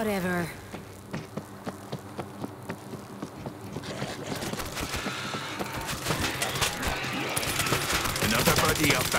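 Footsteps patter quickly over a hard floor.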